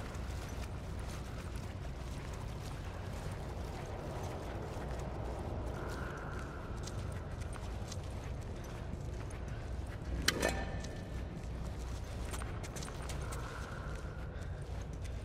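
Footsteps crouch and shuffle softly over damp ground.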